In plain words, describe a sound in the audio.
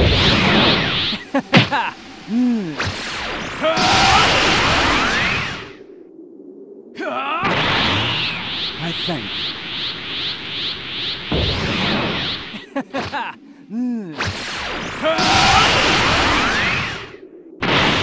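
Energy blasts roar and explode in a game.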